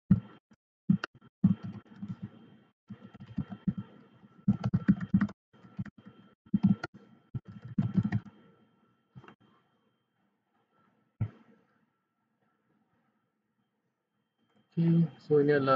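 A man talks calmly into a close microphone, with pauses.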